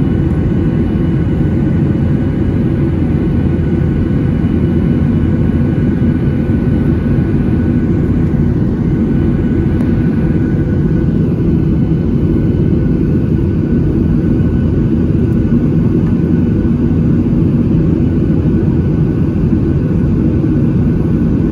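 Jet engines roar in a steady, deep rumble, heard from inside an aircraft cabin.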